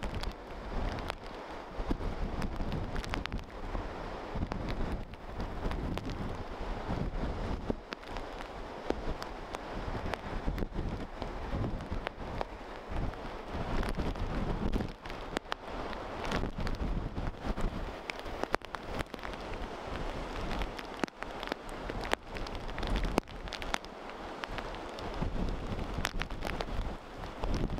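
Strong wind buffets and rumbles outdoors.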